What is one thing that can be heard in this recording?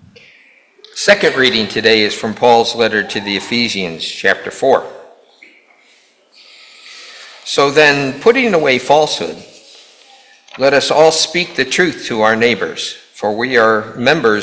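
An elderly man speaks calmly into a microphone in an echoing hall.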